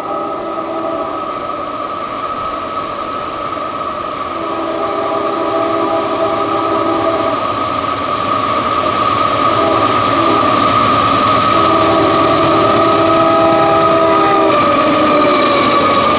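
A railroad crossing bell rings steadily.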